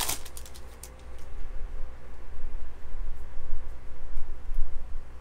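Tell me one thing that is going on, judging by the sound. Trading cards rustle and slide against each other as hands flip through them.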